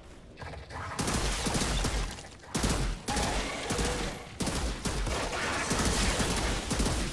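Rapid gunfire bursts and crackles loudly.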